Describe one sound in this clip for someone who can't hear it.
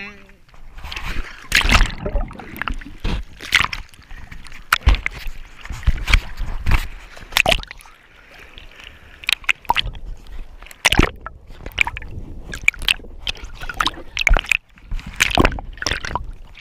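Hands paddle through water with splashes.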